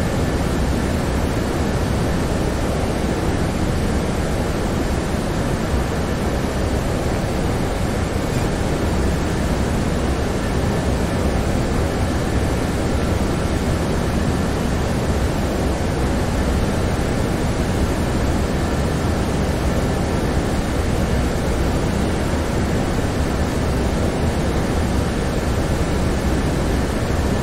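Jet engines drone steadily with rushing air, heard from inside a plane.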